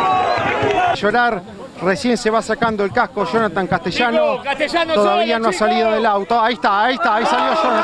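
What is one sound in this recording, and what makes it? A man speaks excitedly into a microphone up close.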